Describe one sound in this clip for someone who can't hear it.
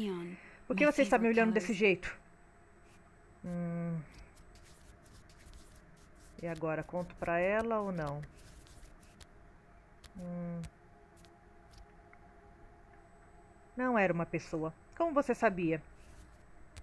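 A young woman speaks calmly in short phrases, with pauses between them.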